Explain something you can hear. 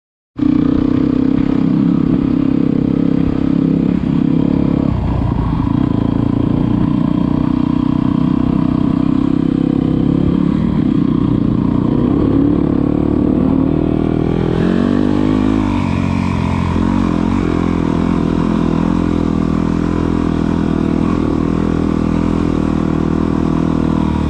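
A dirt bike engine runs close by, revving up and down.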